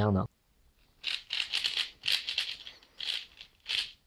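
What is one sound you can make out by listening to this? A plastic puzzle cube clicks and rattles as its layers are quickly twisted.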